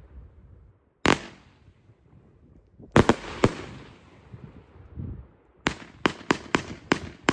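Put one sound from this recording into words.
Fireworks burst with sharp, loud bangs that echo away.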